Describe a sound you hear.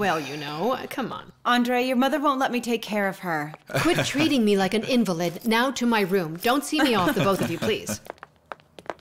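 A middle-aged woman speaks quickly and with animation nearby.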